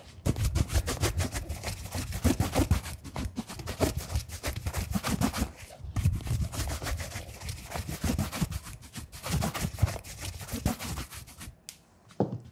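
A stiff brush rubs quickly back and forth over leather.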